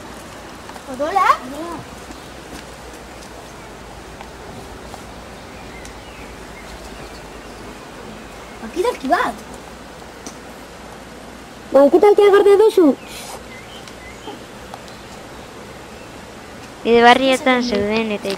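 A young woman speaks briefly in short bursts, close by.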